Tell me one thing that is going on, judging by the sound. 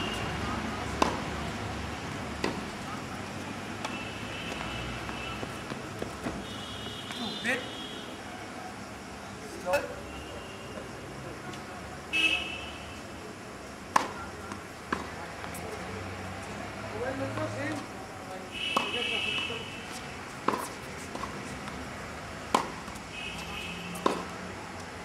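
A tennis ball is struck by rackets with sharp pops, now and then.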